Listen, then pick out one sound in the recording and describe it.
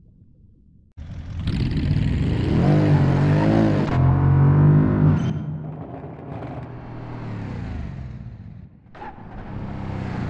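A car engine revs hard as the car speeds along a dirt road.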